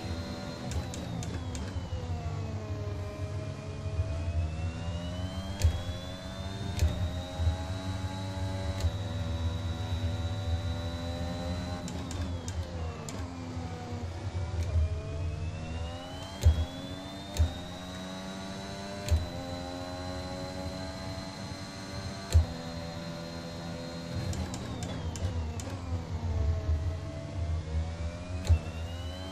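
A racing car engine roars at high speed, dropping in pitch under braking and rising again as it accelerates.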